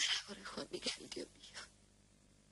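A woman speaks with emotion.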